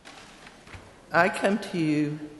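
An elderly woman speaks into a microphone.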